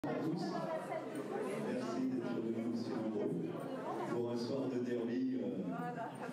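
A crowd of people chatter in a large hall.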